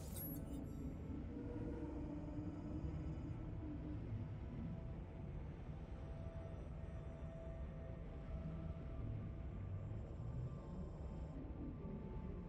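A huge creature sings in low, drawn-out tones.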